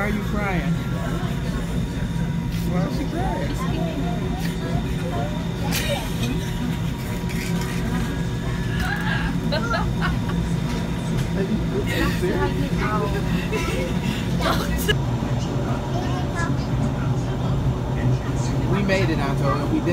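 A train hums and rumbles steadily along the tracks.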